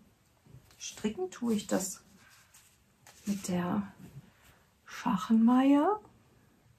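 A woman speaks calmly and with animation close to a microphone.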